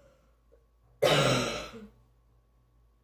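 A boy coughs loudly close by.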